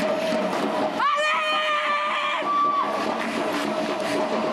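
A young woman shouts with effort outdoors.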